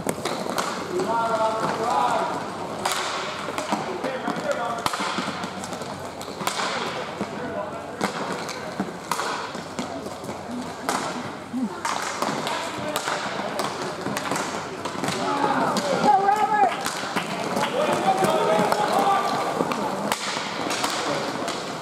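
Young players shout to each other from a distance in an echoing hall.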